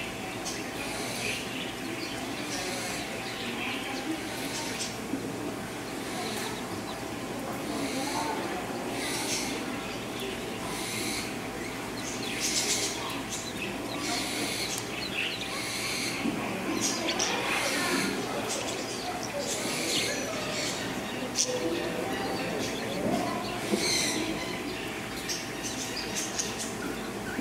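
Ducklings peep softly and often.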